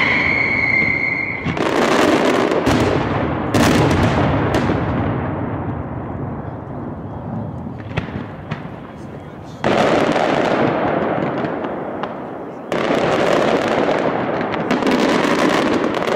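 Fireworks burst with loud, crackling bangs overhead.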